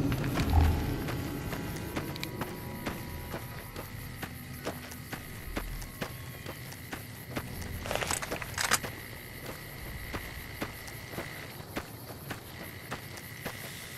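Footsteps crunch steadily on loose gravel.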